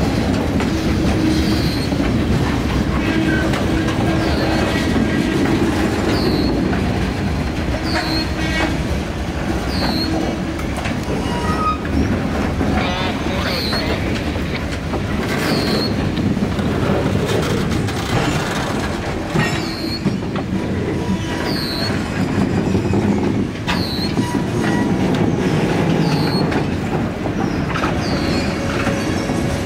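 A freight train rolls past close by with a steady rumble.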